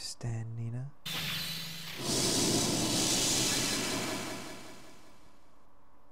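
A magic spell swells with a loud rushing whoosh and slowly fades.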